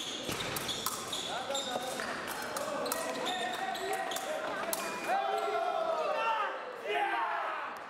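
Fencers' feet stamp and shuffle on the floor.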